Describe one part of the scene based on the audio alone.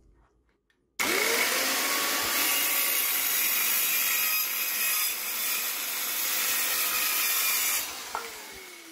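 A circular saw whirs loudly as it cuts through a wooden board.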